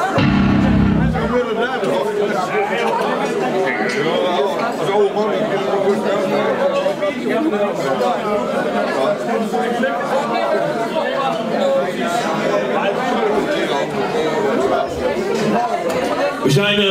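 A rock band plays loud live music in an echoing hall.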